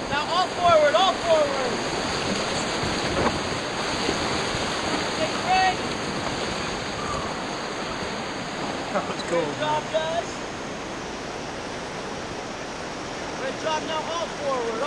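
White water rushes and roars loudly.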